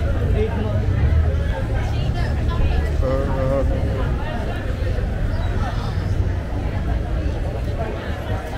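Young women talk and chatter nearby outdoors.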